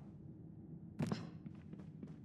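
A small body lands with a thud on wooden floorboards.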